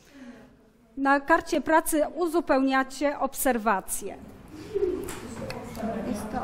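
A woman speaks clearly to a class.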